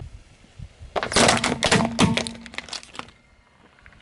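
A shoe crackles and crunches under a car tyre.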